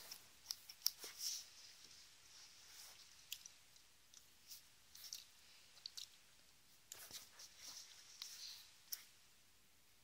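Hair rustles as a hand handles it.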